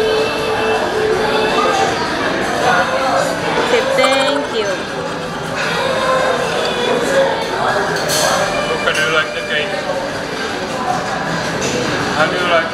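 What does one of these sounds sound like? A crowd chatters indoors in the background.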